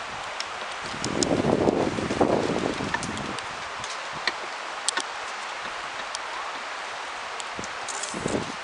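Wind gusts outdoors, buffeting the microphone.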